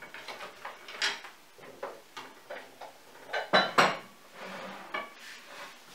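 A wooden cabinet door knocks as it opens and closes.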